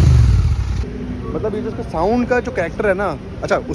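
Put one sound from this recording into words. A young man talks casually, close to a microphone.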